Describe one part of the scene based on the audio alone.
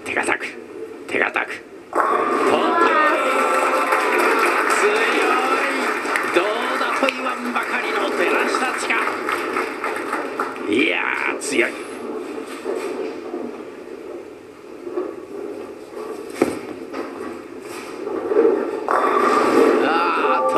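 A bowling ball strikes the pins with a loud clatter.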